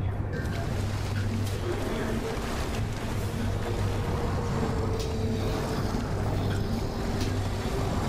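Water splashes and churns as something wades through it.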